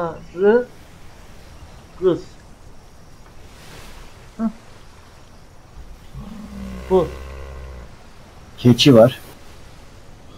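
A man talks in short bursts close to a microphone.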